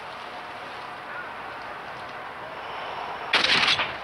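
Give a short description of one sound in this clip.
A rifle fires a single muffled shot.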